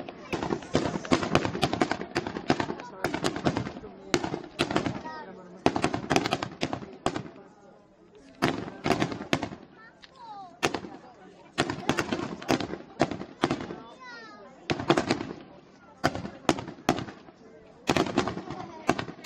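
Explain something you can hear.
Fireworks burst overhead with sharp bangs and crackling, again and again.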